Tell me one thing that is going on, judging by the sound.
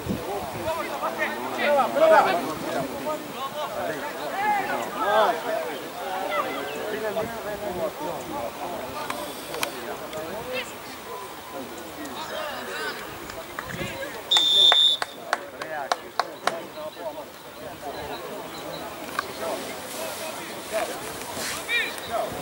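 Young players shout to each other in the distance outdoors.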